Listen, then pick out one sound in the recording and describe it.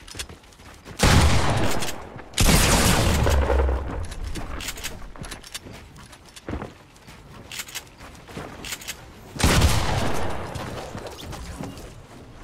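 Loud gunshots and blasts crack in quick bursts.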